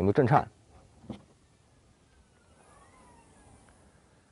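A car's rear hatch clicks open.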